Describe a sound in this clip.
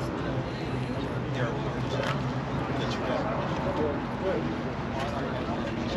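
A crowd of people murmurs outdoors in the distance.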